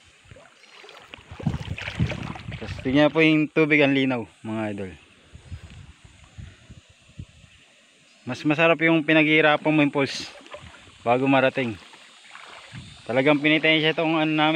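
Water ripples gently over stones in a shallow river.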